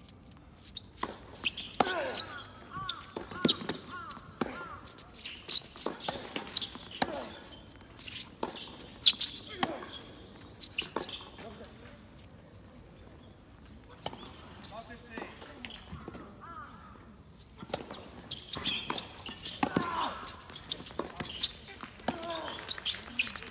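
Tennis players hit a ball back and forth with rackets on a hard court outdoors.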